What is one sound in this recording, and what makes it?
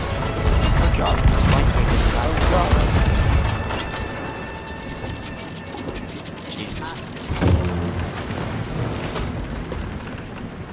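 Waves wash and splash against a wooden ship's hull.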